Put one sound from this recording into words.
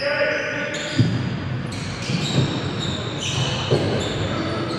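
A basketball bounces with hollow thuds.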